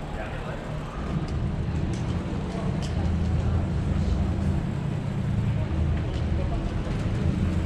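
A car drives along the street.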